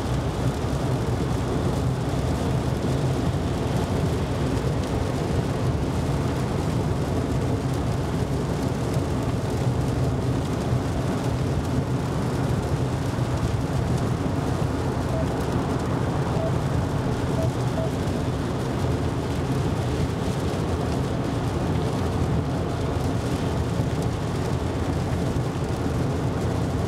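A car's tyres and engine rumble steadily on a wet road.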